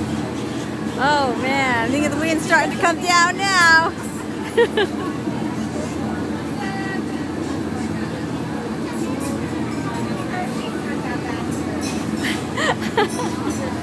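A woman shrieks and squeals with laughter close by.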